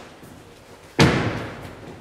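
A heavy thud sounds as a man steps up onto a wooden platform.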